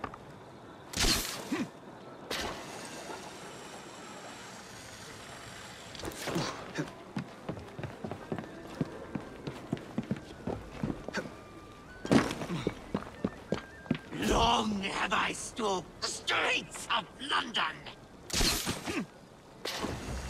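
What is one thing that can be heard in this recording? A grappling rope whizzes as it shoots out.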